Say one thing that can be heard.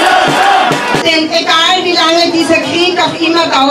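A middle-aged woman reads out calmly through a microphone and loudspeakers.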